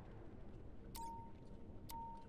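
Short electronic menu beeps sound.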